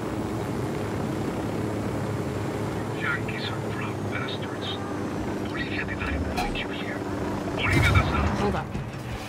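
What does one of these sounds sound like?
A helicopter's rotor thrums steadily overhead.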